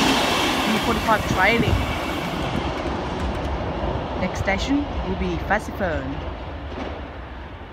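Train wheels squeal on the rails as a train moves away.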